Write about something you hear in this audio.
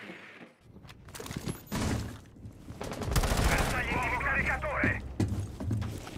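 A rifle fires a few quick shots.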